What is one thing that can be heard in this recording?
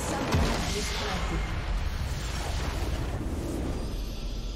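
A huge crystal structure shatters with a deep rumbling blast.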